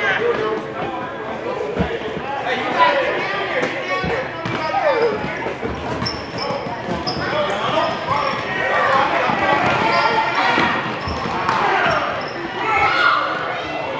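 A crowd of spectators cheers and shouts in an echoing gym.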